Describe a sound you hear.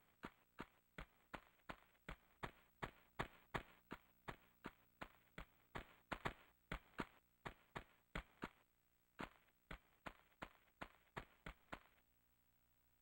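Footsteps tap quickly and evenly on hard ground.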